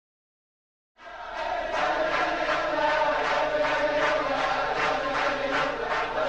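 A crowd of men sings loudly together.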